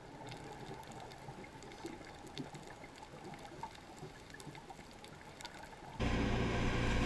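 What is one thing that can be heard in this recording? Divers' breathing bubbles gurgle underwater.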